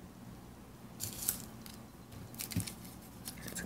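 Paper rustles and crinkles softly as it is handled and set down on a table.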